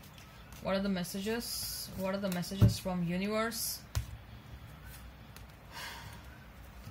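A deck of cards is shuffled and slid softly across cloth.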